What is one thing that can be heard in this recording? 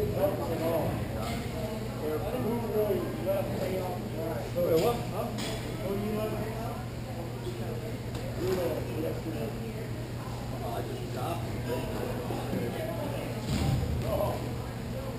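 Young men call out in the distance, echoing through a large hall.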